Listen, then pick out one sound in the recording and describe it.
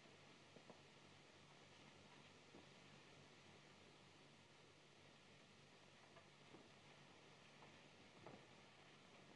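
Soft footsteps fall slowly on a floor.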